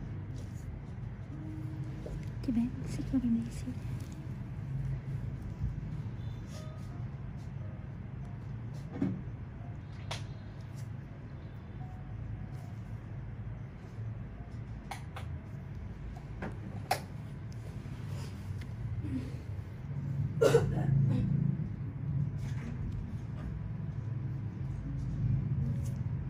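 A needle faintly scrapes against skin close by.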